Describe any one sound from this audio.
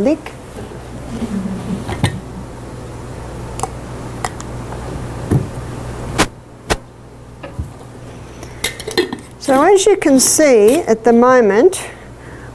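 Glass jars clink and knock against a table.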